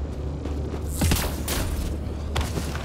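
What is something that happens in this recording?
A jet thruster roars in a short burst.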